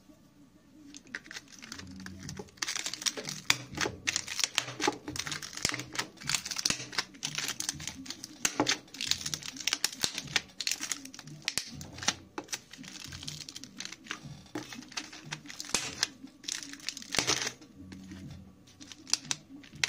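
A fork scrapes and pokes at crinkling plastic film.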